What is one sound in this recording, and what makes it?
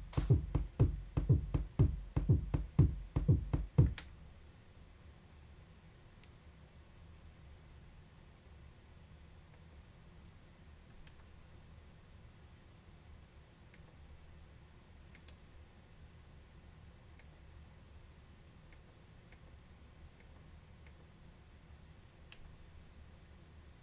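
Knobs and buttons on a drum machine click softly.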